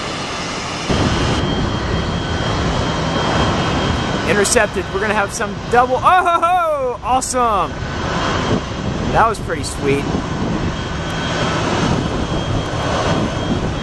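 A small jet airliner's engines hum as it glides in to land.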